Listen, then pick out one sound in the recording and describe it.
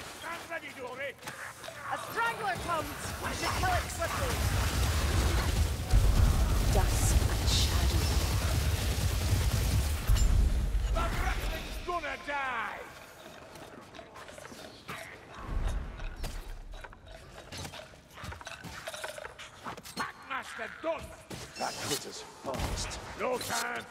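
Blades swing and slash in a fight.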